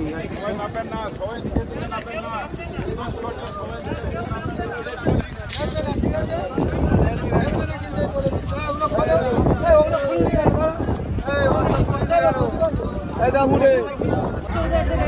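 A crowd of men talk and shout outdoors close by.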